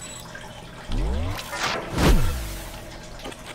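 A magical burst whooshes and booms.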